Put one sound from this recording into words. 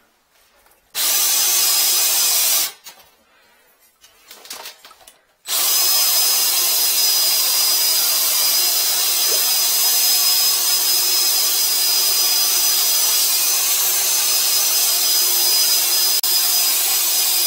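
A high-pressure water jet hisses loudly into a drain.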